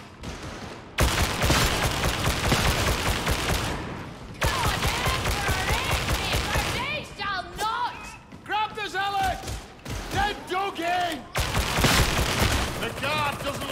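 A rapid-fire gun shoots in bursts.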